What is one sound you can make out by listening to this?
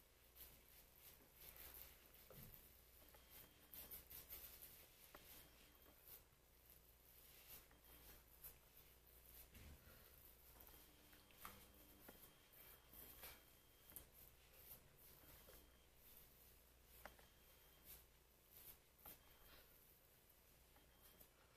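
A cloth rubs softly against skin.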